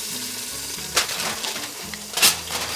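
Metal tongs clink against a glass dish.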